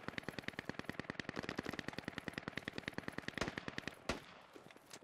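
An automatic rifle fires a long rapid burst.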